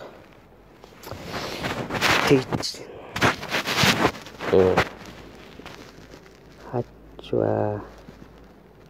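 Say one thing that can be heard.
A person speaks with animation, close to the microphone.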